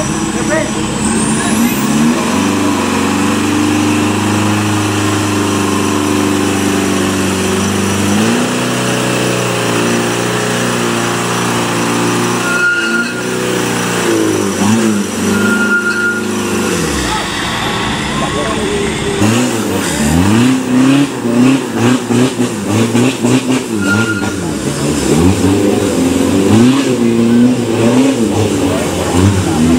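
A truck engine revs hard and roars.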